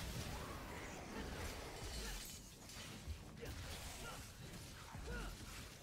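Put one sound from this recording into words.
Heavy thuds and low rumbles boom throughout.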